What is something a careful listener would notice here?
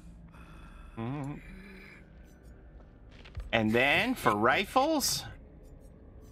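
A middle-aged man speaks with animation into a microphone, close by.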